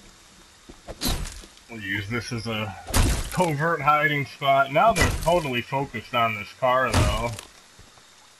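An axe strikes a wooden door with heavy thuds.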